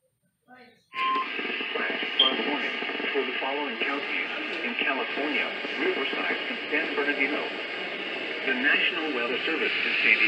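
A synthetic voice reads out a warning through a small radio speaker.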